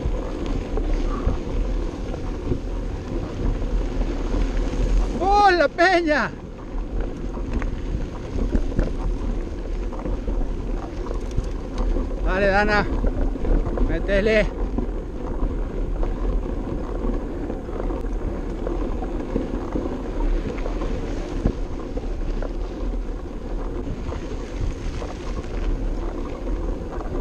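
Wind buffets the microphone throughout.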